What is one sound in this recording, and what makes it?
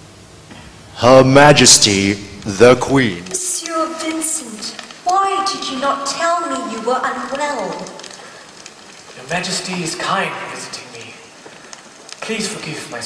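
A man speaks with feeling in a large hall.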